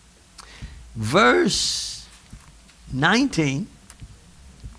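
A man preaches loudly with emphasis through a microphone in an echoing room.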